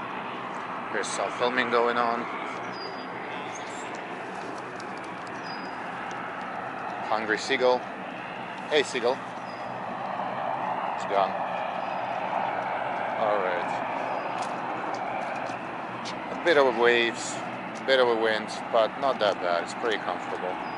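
A seagull cries out in loud, sharp calls.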